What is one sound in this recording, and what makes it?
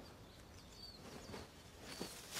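Footsteps rustle through dry undergrowth.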